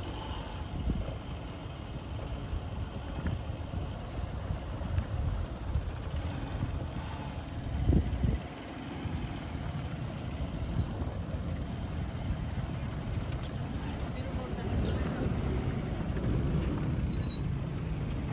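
A motorbike engine putters nearby.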